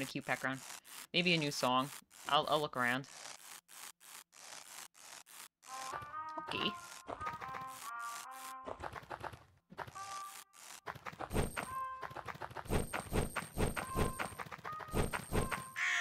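Short game sound effects blip as a small figure jumps and lands.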